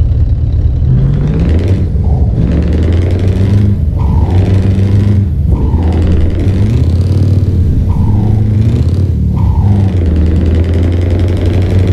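A truck engine revs up again and again as gears change.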